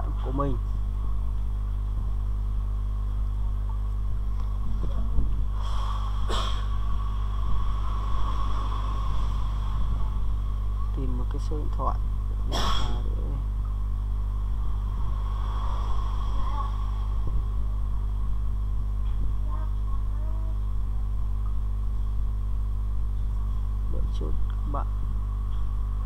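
A young man speaks quietly and briefly into a close microphone.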